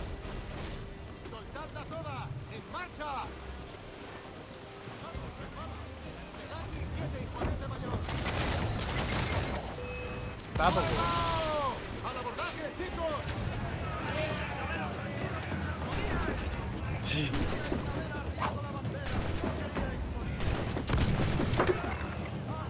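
Cannons boom in bursts.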